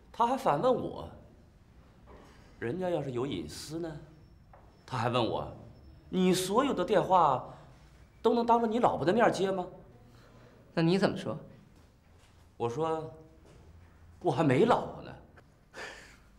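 A middle-aged man speaks insistently, close by.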